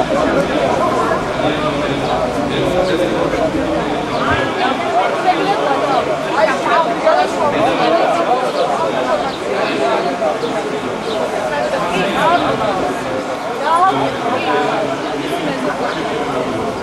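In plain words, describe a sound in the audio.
A crowd of men talks loudly outdoors.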